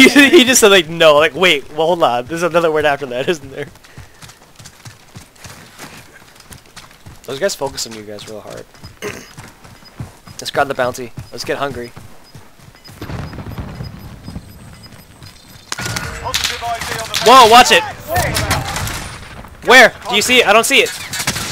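Footsteps run quickly over ground and pavement.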